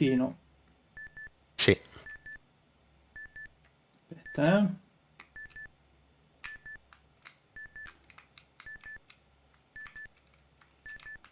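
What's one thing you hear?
An electronic heart monitor beeps at a steady, regular pace.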